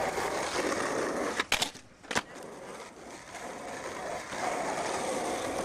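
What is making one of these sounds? Skateboard wheels roll and rumble over pavement outdoors.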